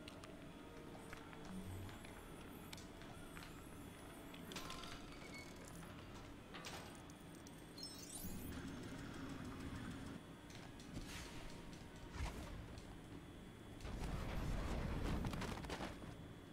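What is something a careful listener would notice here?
Magic spells crackle and sparkle.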